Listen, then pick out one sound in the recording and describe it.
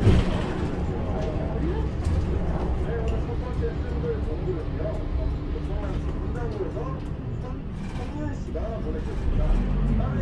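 The bus slows and its engine quietens as it pulls up behind another bus.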